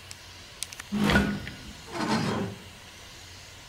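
A metal valve wheel creaks as it turns.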